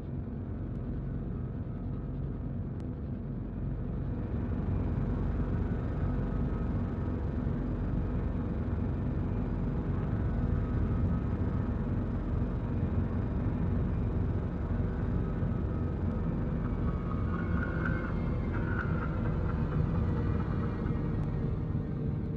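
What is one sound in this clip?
A spaceship engine rumbles low and steady, growing a little louder early on.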